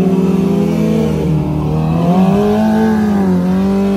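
A motorcycle engine revs loudly, rising and falling.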